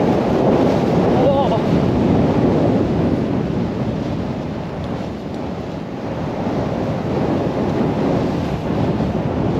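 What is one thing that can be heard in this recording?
A snowboard carves and hisses through deep powder snow.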